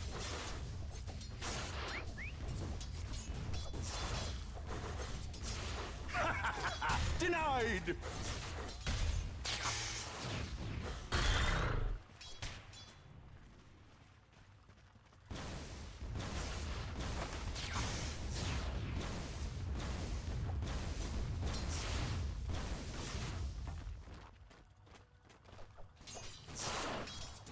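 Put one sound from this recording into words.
Fantasy game combat clashes with rapid hits and magic blasts.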